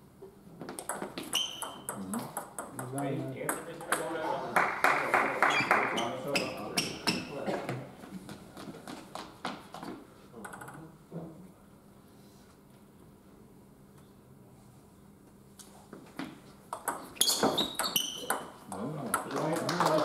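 A table tennis ball clicks quickly back and forth off bats and a table in an echoing hall.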